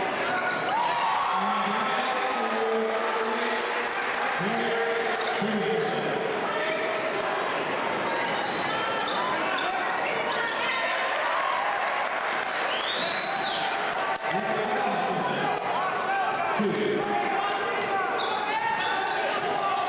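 A large crowd cheers and chatters in a big echoing gym.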